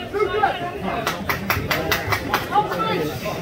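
Players slap hands together in quick high fives.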